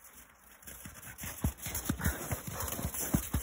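Boots crunch through snow.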